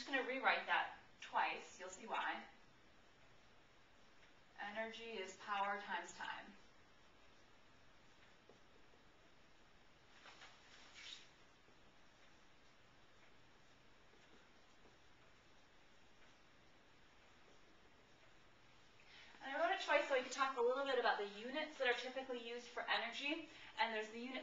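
A young woman speaks calmly, explaining.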